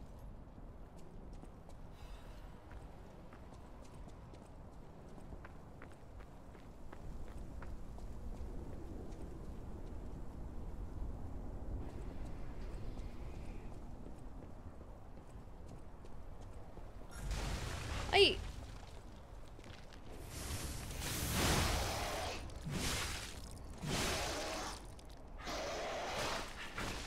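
A young woman talks quietly into a microphone.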